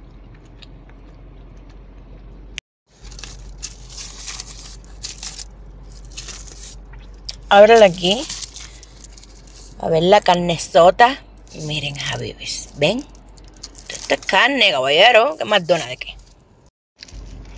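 Paper wrapping rustles and crinkles as hands unfold it.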